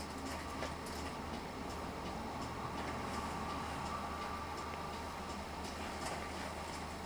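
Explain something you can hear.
Cars drive slowly past on a street.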